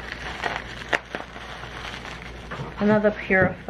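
Plastic bubble wrap crinkles and rustles as hands handle it.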